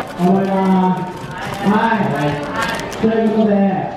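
A cardboard box rustles and taps as hands handle it.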